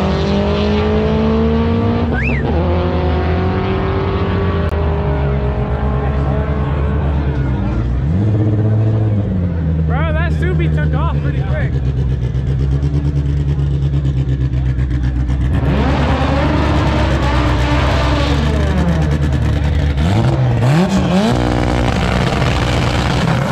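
A race car engine roars loudly and steadily.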